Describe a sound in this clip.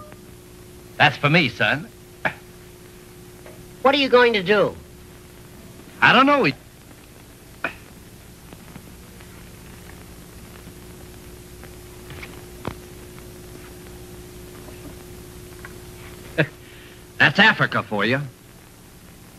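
A man exclaims loudly in short bursts.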